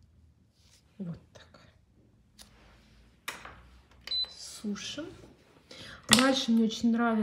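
Plastic false nails click together softly in a hand.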